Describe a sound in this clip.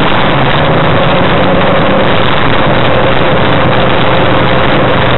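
A small plane's engine drones loudly and steadily.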